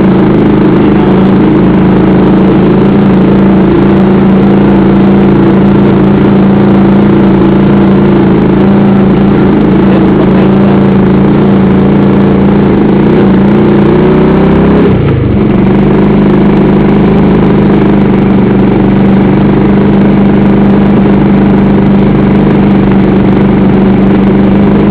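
A motorcycle engine hums loudly and steadily close by, briefly dropping in pitch as it shifts gear.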